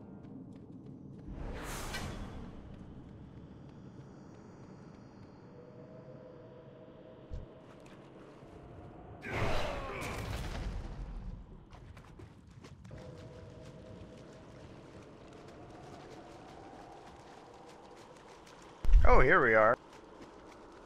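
Footsteps patter as a game character runs.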